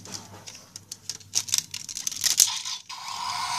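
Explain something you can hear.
Plastic parts click and snap as a toy is twisted by hand.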